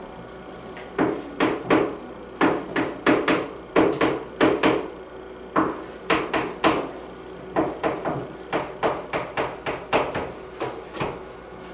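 A marker taps and squeaks on a board in quick strokes.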